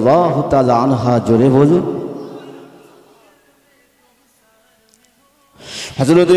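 A man chants loudly in a singing voice through a microphone and loudspeakers, with a ringing echo.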